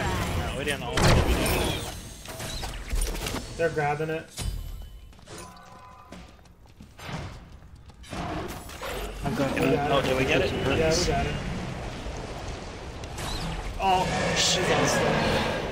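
Game sound effects of spells and blasts burst out.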